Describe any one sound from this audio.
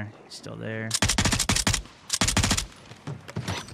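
A light machine gun fires in bursts.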